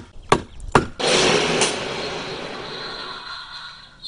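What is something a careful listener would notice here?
A toy potty plays a flushing sound.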